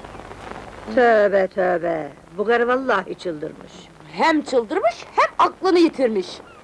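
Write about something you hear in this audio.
An older woman speaks loudly and with emotion, close by.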